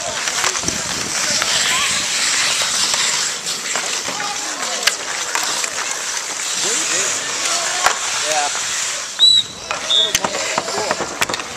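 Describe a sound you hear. Children shout across an outdoor rink.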